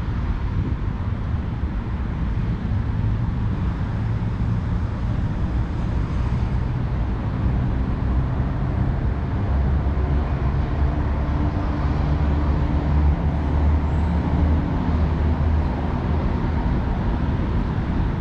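Wind rumbles loudly outdoors, growing stronger midway.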